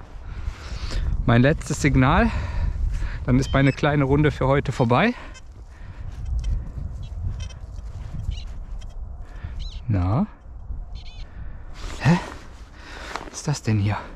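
A small trowel scrapes and digs into dry soil.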